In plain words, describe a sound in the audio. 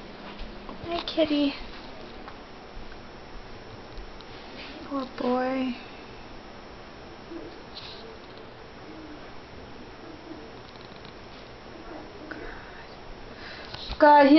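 A cat meows several times nearby.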